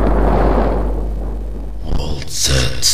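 A lighter flame hisses and flickers close by.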